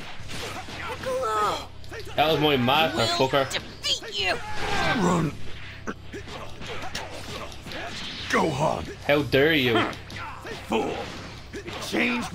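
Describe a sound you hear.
Punches thud in a fight.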